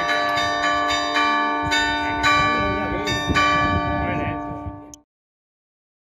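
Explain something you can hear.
Church bells ring in rapid, overlapping strokes outdoors.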